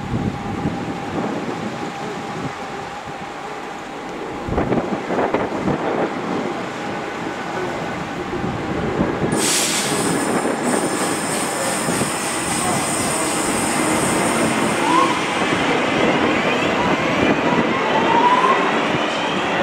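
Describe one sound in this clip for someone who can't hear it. A diesel train engine rumbles and hums steadily nearby.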